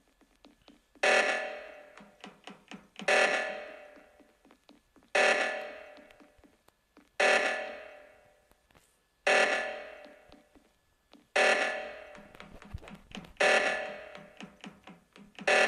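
An alarm blares in loud, repeated bursts about every two seconds.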